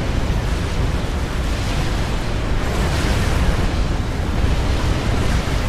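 Many gunshots and explosions rattle and boom in a dense, continuous battle.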